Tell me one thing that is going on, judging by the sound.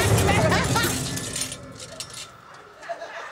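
A woman speaks loudly and with animation.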